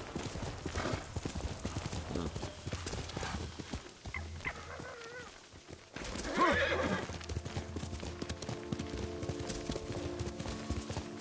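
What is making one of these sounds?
A horse gallops with rapid hoofbeats on grass and dirt.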